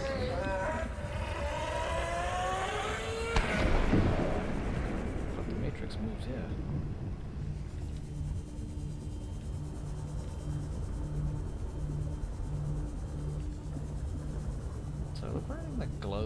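A small submarine's motor hums low and steady underwater.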